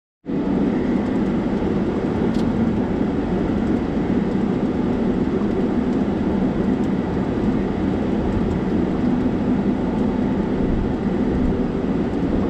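Tyres roll over a paved road.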